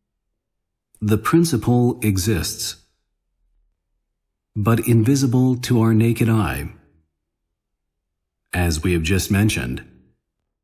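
A middle-aged man speaks calmly and close up through a microphone, with pauses.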